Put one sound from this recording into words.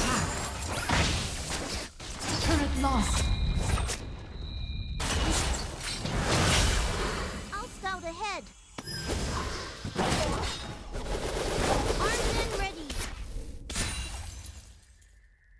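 Video game spells blast and crackle in a rapid, busy fight.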